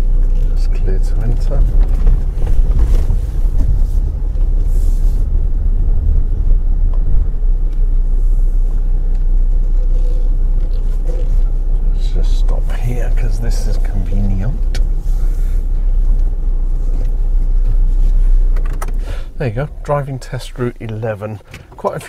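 A middle-aged man talks calmly and close, through a microphone.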